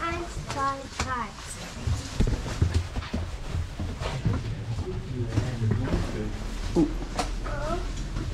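A man talks nearby, with animation, in an echoing space.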